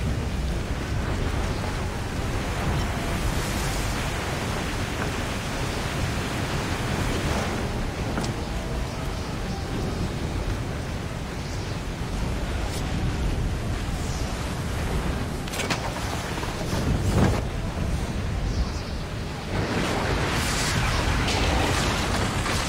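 Stormy wind roars steadily.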